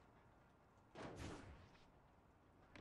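A man lands with a heavy thud on a metal roof.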